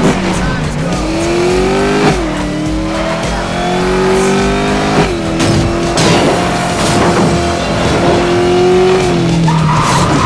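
A racing car engine revs hard and shifts gears as the car speeds along.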